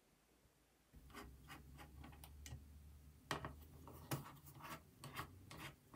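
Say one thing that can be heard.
Small parts click and tap under fingers.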